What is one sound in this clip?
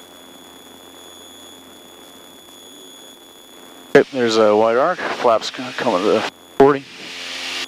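An aircraft engine drones steadily inside a small cockpit.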